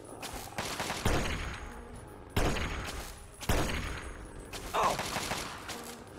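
Rifle shots ring out with a loud crack and echo.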